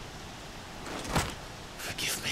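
A fist thuds against a rock wall.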